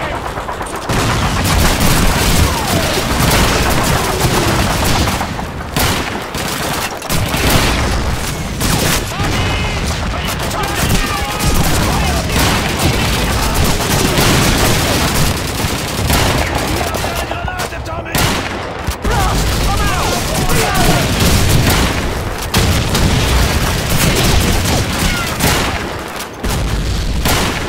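Guns fire in rapid, loud bursts nearby.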